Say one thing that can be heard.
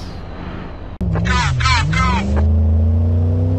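A pickup truck engine roars and revs up.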